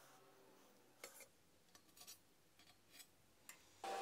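Metal parts clink together as a bearing is set onto a metal bar.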